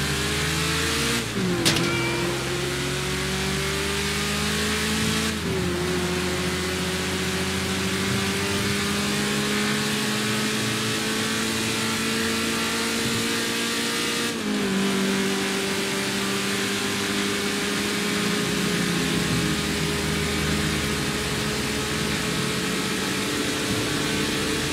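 A car engine roars steadily at speed, dropping in pitch at each gear shift and slowly climbing again.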